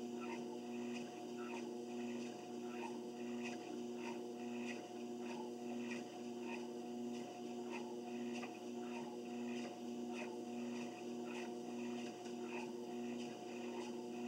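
A treadmill motor hums steadily.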